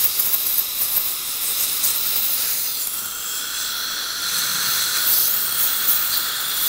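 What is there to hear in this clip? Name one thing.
A suction tube slurps and hisses steadily.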